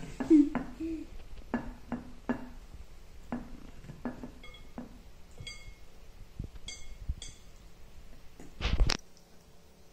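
A knife scrapes filling across bread.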